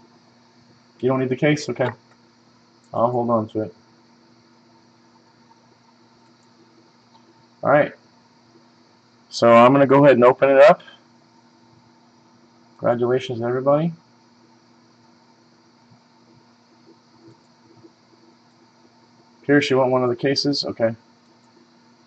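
A man speaks calmly in short bursts through a webcam microphone.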